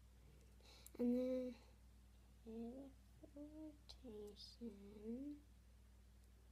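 A young girl talks calmly close by.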